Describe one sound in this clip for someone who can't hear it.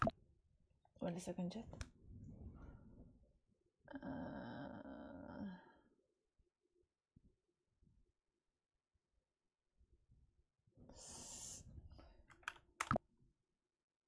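A young woman speaks softly and casually into a nearby microphone.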